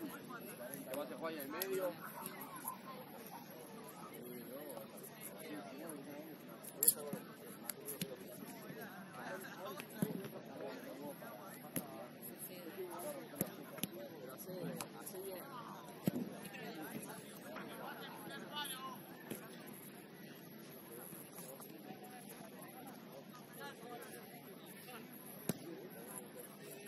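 Young women talk and call out to each other across an open field outdoors.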